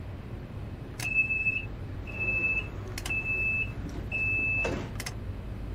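A door warning tone beeps several times in short bursts.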